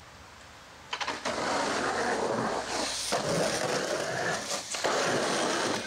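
A skateboard clatters against concrete.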